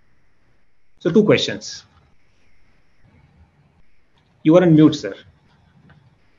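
A man speaks in short phrases over an online call.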